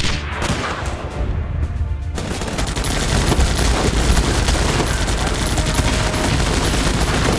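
Rapid gunfire crackles in a battle.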